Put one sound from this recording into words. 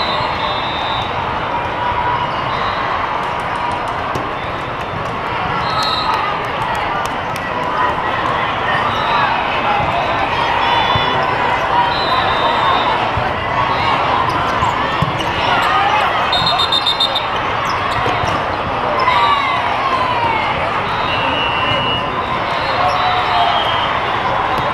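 Many sneakers squeak sharply on a court floor in a large echoing hall.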